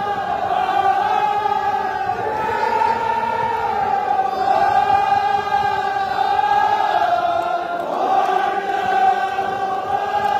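A large crowd of men chants loudly together in a big echoing hall.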